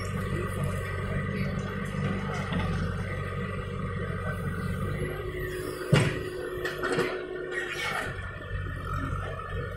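A diesel backhoe loader's engine runs under load.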